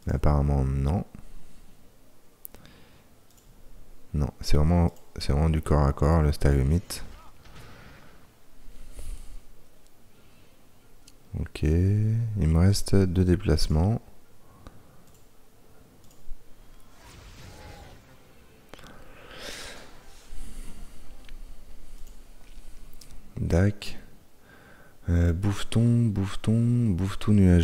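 A man talks calmly and close to a microphone, in short bursts.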